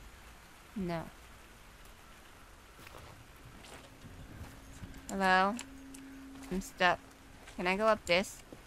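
A young woman speaks in short bursts into a microphone, close up.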